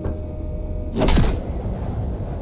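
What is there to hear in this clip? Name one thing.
A jump pad launches with a loud whoosh.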